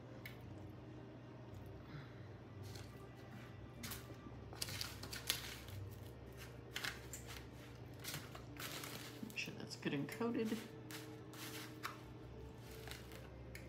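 Hands pat and press food into a dry crumb coating.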